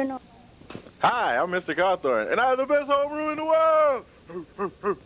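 A man speaks loudly with animation, stretching his words.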